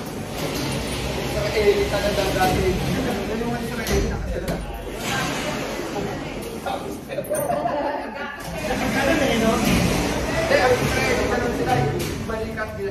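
A small group of men and women chat nearby.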